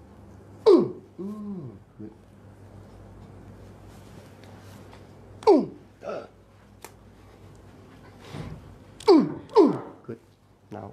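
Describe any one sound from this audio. An older man lets out loud, sharp groans.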